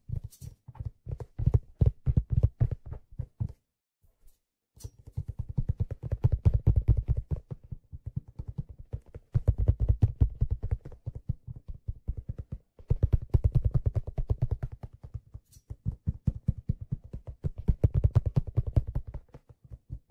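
Fingers tap and scratch rapidly on a hard object right beside a microphone.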